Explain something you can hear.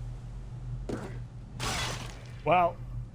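A blade slashes and strikes in a fight.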